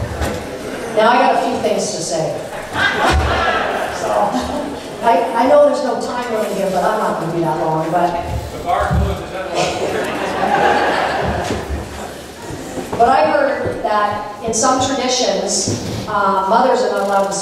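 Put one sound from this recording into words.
A woman speaks expressively into a microphone in a large, echoing room.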